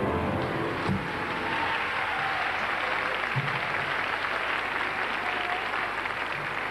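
A large audience of children claps loudly in an echoing hall.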